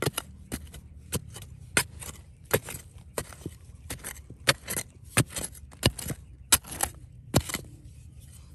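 A metal tool strikes and scrapes against rocks and gravel.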